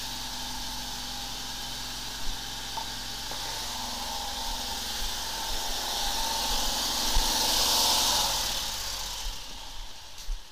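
A high-pressure water jet hisses and sprays loudly.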